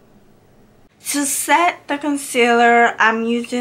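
A young woman speaks clearly and calmly, close to the microphone.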